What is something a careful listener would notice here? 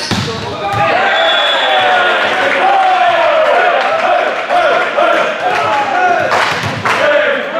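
Young men shout and cheer loudly after a point.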